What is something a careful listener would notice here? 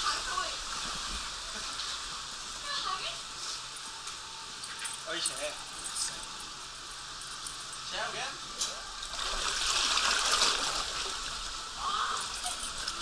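Water rushes and splashes down a slide.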